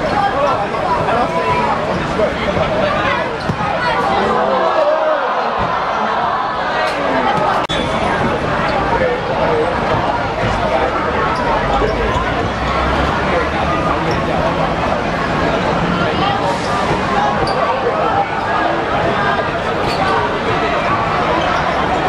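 A crowd of spectators chatters and cheers loudly nearby.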